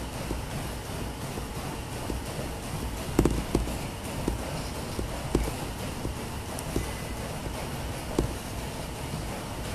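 Fabric rustles as it is handled close by.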